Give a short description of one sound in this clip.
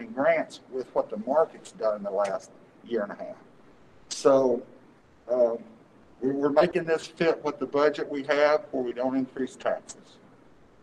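A middle-aged man speaks with animation into a microphone in an echoing room.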